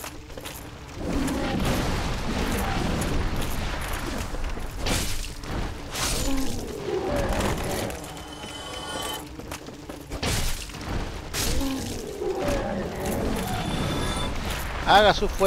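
Flames roar and crackle close by.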